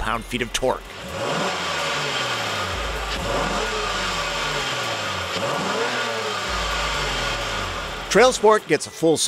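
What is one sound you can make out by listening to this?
An engine revs up and down repeatedly, rising and falling in pitch.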